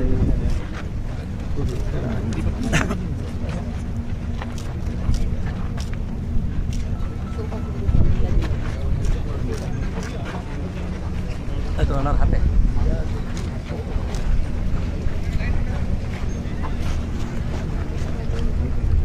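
Men in a crowd talk over one another close by outdoors.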